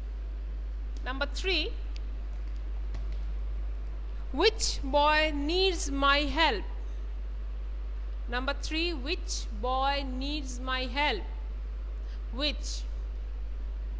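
A young woman speaks through a microphone, clearly and with pauses, as if teaching.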